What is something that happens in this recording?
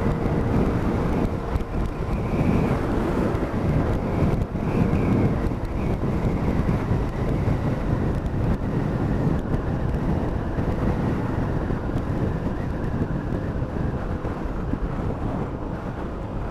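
Wind rushes loudly past the rider's helmet.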